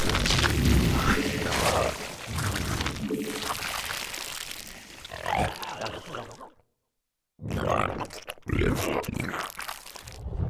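Video game battle effects crackle and thump.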